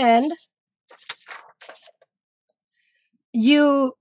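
A sheet of paper slides across a hard surface.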